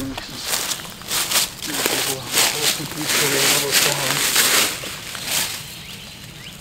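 Plants rustle and snap as a man picks them from the ground.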